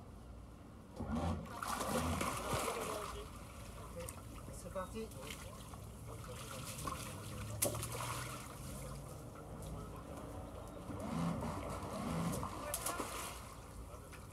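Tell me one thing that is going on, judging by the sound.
Water churns and splashes noisily beside a boat hull in bursts.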